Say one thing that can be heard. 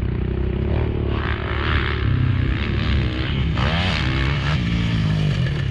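A motorcycle engine revs up and down close by.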